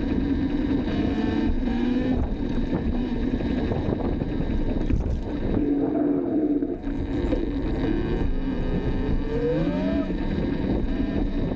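A man talks nearby, partly masked by the wind.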